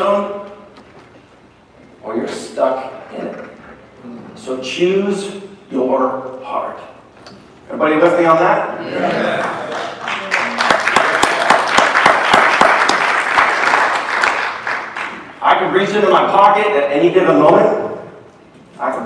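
A middle-aged man speaks loudly and with animation in an echoing hall.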